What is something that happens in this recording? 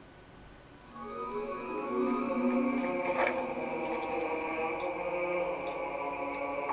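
Game music plays through a television's speakers.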